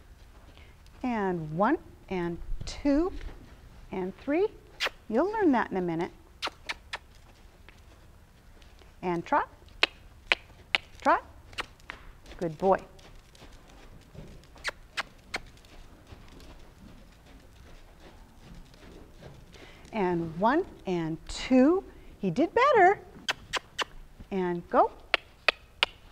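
A woman speaks in short, lively bursts at a little distance.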